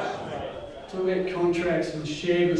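A man speaks to a group in a room.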